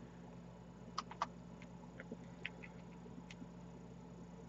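Small beads click softly against each other.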